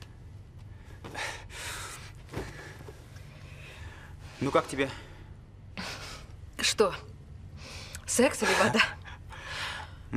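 A young woman speaks playfully nearby.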